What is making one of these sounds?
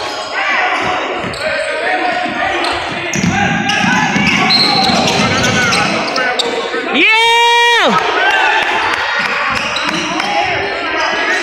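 Spectators and players chatter and call out in the echoing hall.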